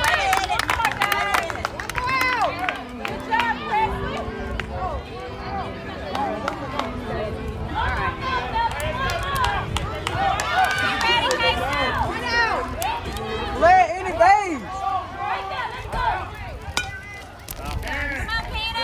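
Young children shout and cheer outdoors.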